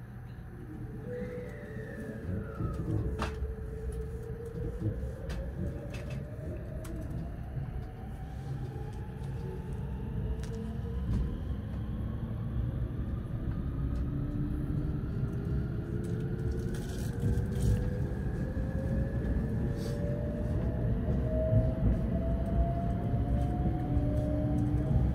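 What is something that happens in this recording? Inside an electric express train, the motors whine, rising in pitch as the train pulls away.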